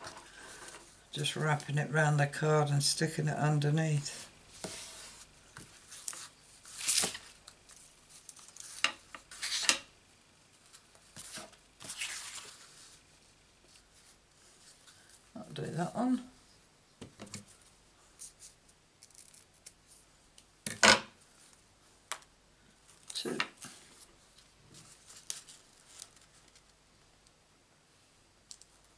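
Hands rustle and slide ribbon and card stock across a table.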